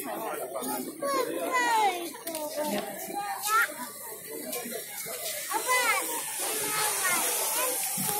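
A large crowd chatters outdoors nearby.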